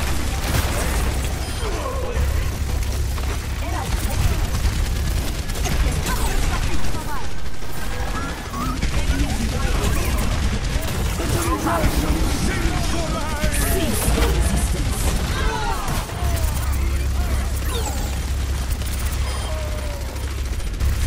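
A heavy rotary gun fires in rapid, rumbling bursts.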